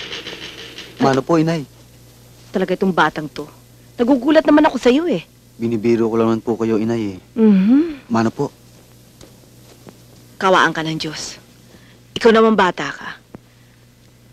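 A young man speaks warmly.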